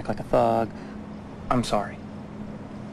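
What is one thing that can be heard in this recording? A man answers in a low voice.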